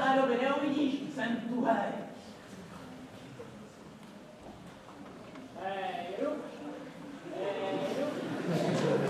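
A young woman speaks in an animated, playful puppet voice nearby.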